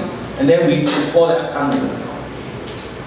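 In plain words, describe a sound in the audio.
A man speaks through a microphone and loudspeakers in a large echoing hall.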